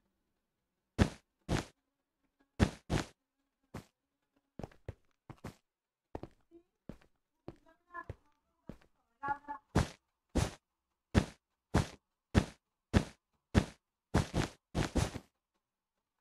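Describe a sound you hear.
Blocks are placed one after another with short, quick clicks.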